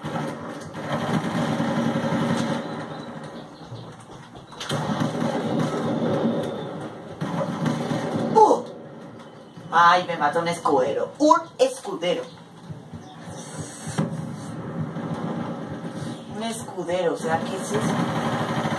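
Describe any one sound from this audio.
Rapid gunfire crackles from a video game over a television speaker.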